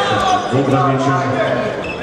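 A handball bounces on a hard floor.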